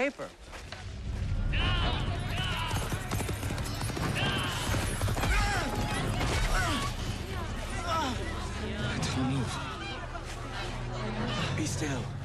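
A crowd shouts and clamours outdoors.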